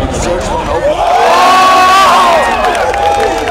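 A crowd cheers and shouts together.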